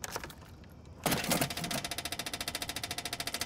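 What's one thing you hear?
A car engine cranks and starts up close by.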